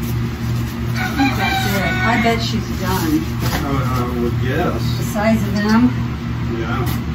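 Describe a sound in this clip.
A goat doe bleats softly at her newborn kid.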